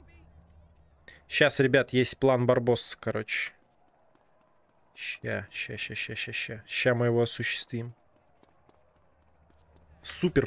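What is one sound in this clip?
Footsteps patter quickly as a man runs.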